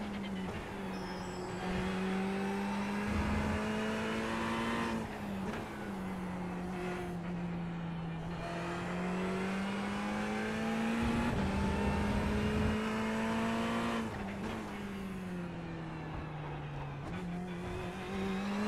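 A racing car engine revs high and shifts gears as the car speeds around a track.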